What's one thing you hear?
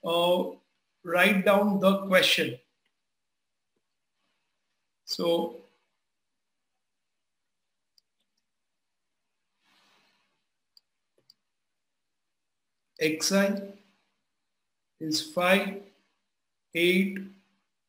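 A middle-aged man speaks calmly into a microphone, explaining in short phrases with pauses.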